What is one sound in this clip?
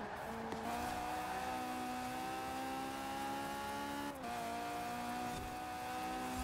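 A car engine roars at high revs, climbing steadily in pitch, with a brief dip as it shifts gear.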